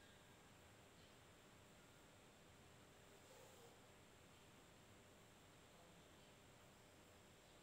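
Fabric rustles softly as it is handled.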